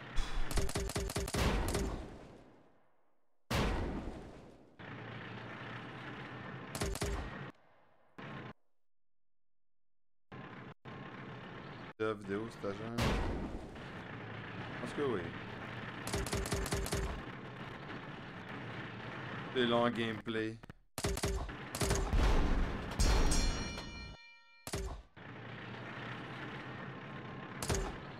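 Game cannons fire in quick bursts of sharp blasts.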